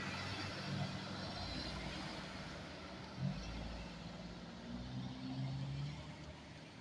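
A car engine hums as a car passes close by.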